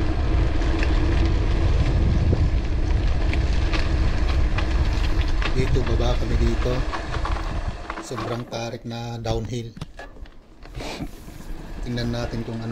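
Mountain bike tyres roll downhill over a grooved concrete road.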